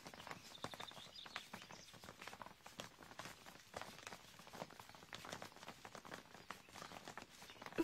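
Footsteps of a marching group tramp along steadily.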